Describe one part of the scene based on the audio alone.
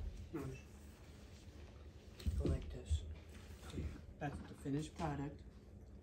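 Wrapping paper rustles as a gift is handled.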